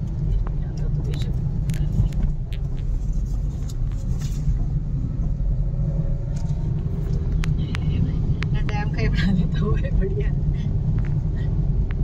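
Tyres rumble steadily on the road, heard from inside a car.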